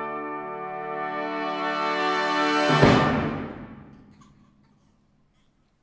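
An orchestra plays a loud final chord in a large hall, ringing out as it ends.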